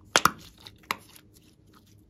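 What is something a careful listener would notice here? Soft slime squishes and squelches between fingers.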